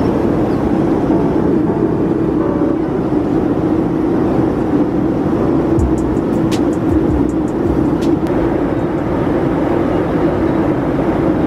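A jet airliner's engines roar steadily inside the cabin.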